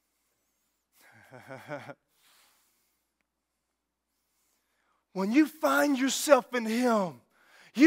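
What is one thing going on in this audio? A man speaks through a microphone in a large hall, in short bursts with pauses.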